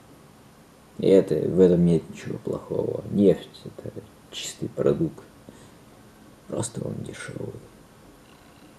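A young man speaks close to the microphone in short bursts with pauses.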